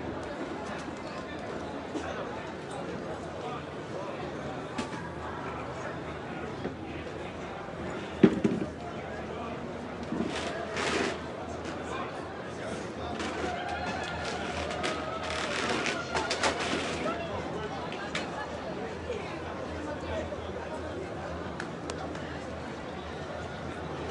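A crowd murmurs and prays outdoors, with voices overlapping in the distance.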